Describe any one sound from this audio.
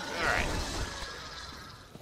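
A heavy sword swings through the air with a whoosh.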